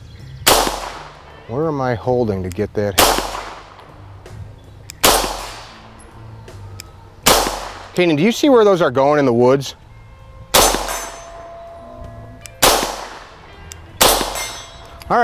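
A pistol fires sharp, loud shots one at a time outdoors, each with a trailing echo.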